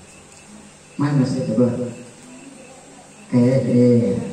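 A young girl sings into a microphone, heard through loudspeakers.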